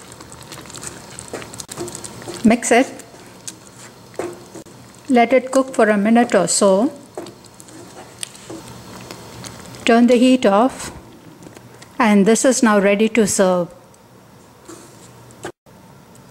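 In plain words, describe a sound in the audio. A wooden spoon scrapes and stirs a thick stew in a pan.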